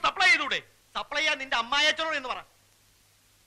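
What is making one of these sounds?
A man speaks with excitement.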